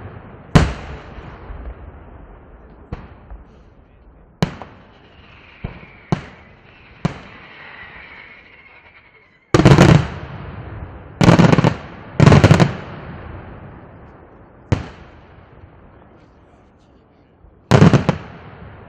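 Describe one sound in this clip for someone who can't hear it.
Firework shells crackle and fizz in the sky.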